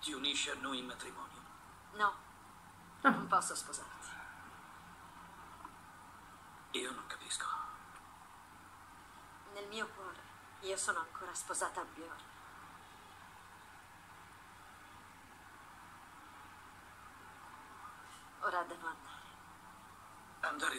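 A young woman speaks calmly and haltingly over an online call.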